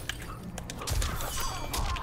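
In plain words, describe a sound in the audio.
Ice shatters with a sharp crack.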